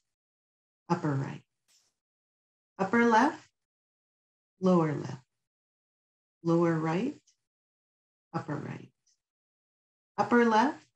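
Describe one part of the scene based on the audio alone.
An older woman speaks calmly in short phrases with pauses, heard through a microphone on an online call.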